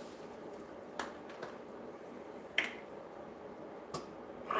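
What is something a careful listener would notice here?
A plastic bottle clicks and taps as it is handled.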